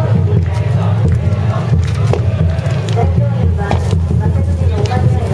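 A large bonfire roars steadily outdoors.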